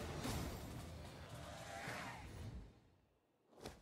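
A triumphant game fanfare plays loudly and fades.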